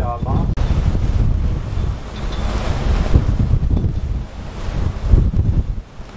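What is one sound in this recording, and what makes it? A flag flaps and snaps in the wind.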